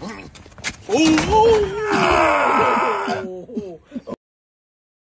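A man shouts loudly.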